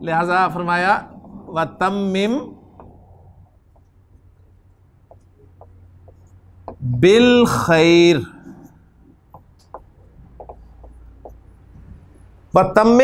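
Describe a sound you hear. A man recites in a slow, melodic chant close to a microphone.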